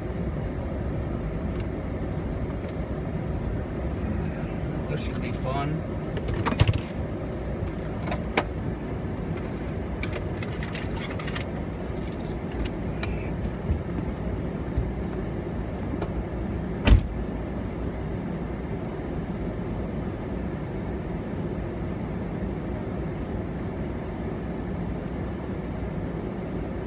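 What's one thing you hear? A car engine idles steadily nearby.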